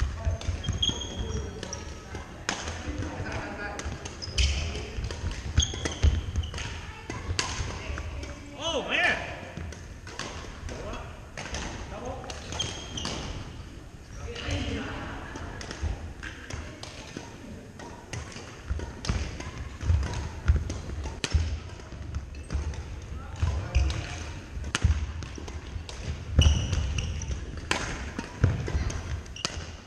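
Paddles smack a ball with sharp pops in an echoing hall.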